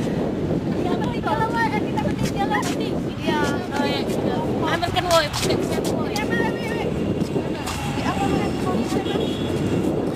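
Young women talk and laugh excitedly close by.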